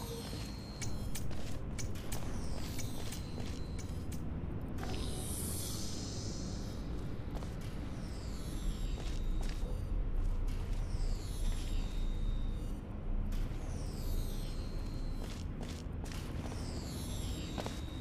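A portal gun fires with sharp electronic zaps.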